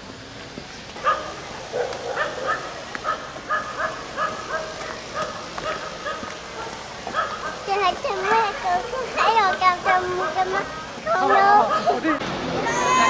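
A young girl talks in a high, lively voice close by.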